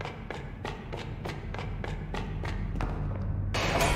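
Footsteps patter quickly across creaking wooden boards.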